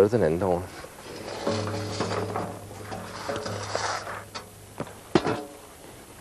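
Steam hisses loudly from a metal drum.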